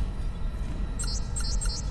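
A keypad beeps several times as its buttons are pressed.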